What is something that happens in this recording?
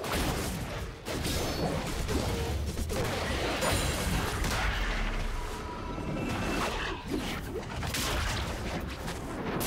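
Video game combat sound effects clash, thud and crackle.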